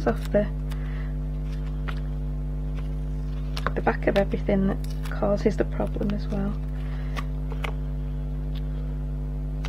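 Stiff paper rustles and taps as a card is handled.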